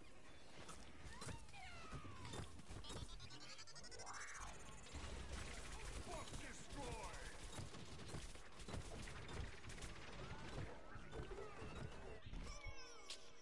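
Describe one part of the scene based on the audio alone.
Cartoon blaster shots fire in a video game.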